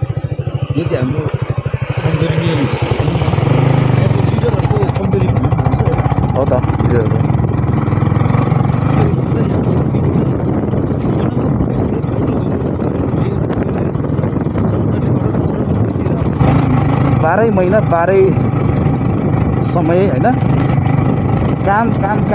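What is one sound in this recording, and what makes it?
A motorcycle engine runs steadily up close.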